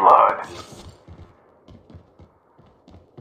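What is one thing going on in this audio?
Footsteps thud on a hard floor at an even pace.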